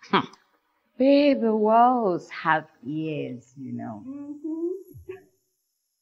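Another young woman answers, speaking playfully and close by.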